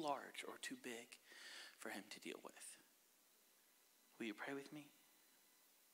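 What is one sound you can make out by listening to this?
A man speaks into a microphone in short bursts with pauses.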